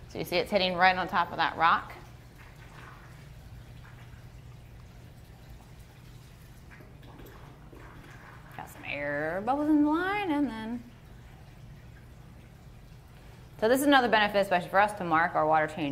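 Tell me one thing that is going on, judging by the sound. Water pours from a hose and splashes gently into a tank.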